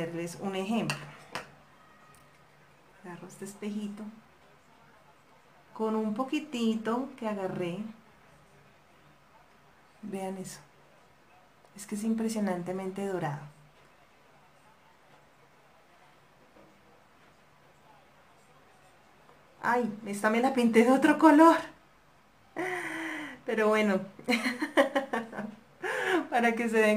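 A young woman talks calmly into a nearby microphone, in short bursts with pauses.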